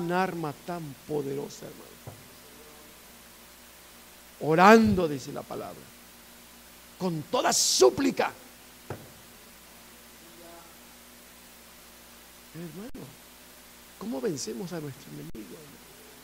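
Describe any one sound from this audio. A middle-aged man lectures through a microphone, speaking in short bursts with pauses.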